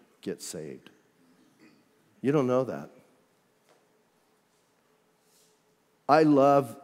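A middle-aged man speaks calmly into a microphone, with pauses.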